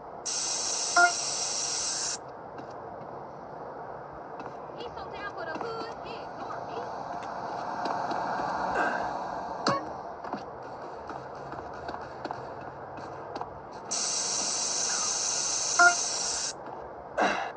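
A spray can hisses steadily in two long bursts.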